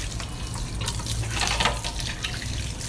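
Water splashes off a plate.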